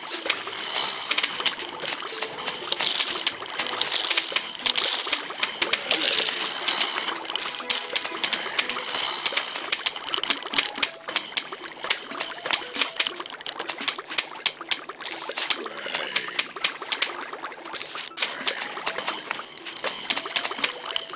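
Peas splat against cartoon zombies over and over.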